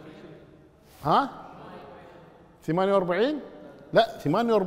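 An elderly man speaks calmly and clearly into a close microphone.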